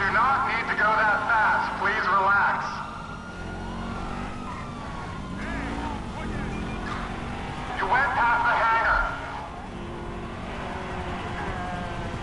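A sports car engine hums as the car drives at speed.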